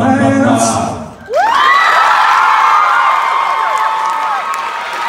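A group of young men sings in close harmony, sliding upward into a long held chord.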